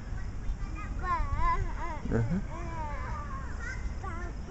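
A toddler babbles and coos close by.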